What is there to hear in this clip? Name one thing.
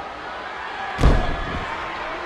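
A body slams heavily onto a ring mat.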